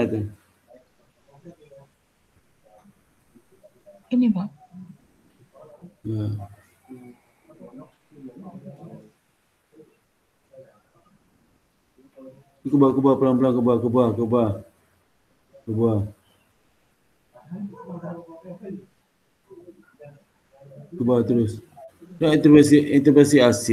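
A man speaks calmly, heard through an online call microphone.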